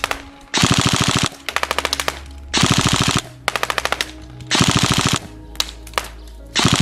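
An electric toy gun fires in short, rapid buzzing bursts.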